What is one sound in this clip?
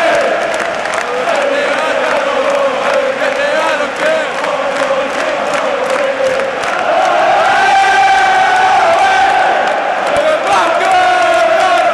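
A young man sings and shouts along close by.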